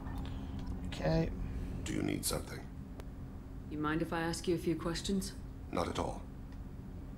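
A man talks casually, close to a microphone.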